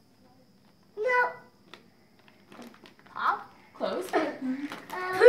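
A young boy talks excitedly up close.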